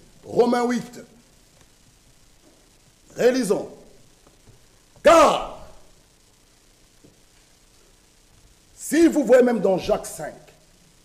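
A man preaches with animation in short bursts through a microphone, in a slightly echoing room.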